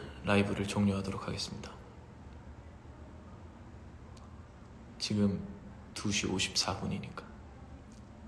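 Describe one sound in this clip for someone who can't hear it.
A young man speaks calmly and close up in short phrases.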